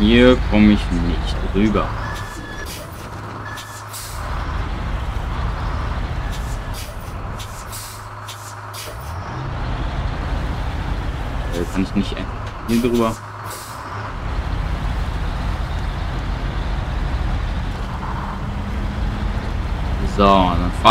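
A heavy truck engine rumbles.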